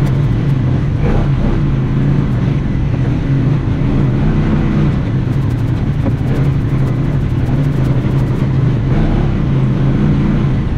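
Tyres roll and bump over a dirt trail.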